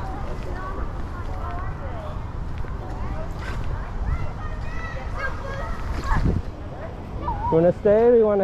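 A swing's chains creak as a child swings back and forth.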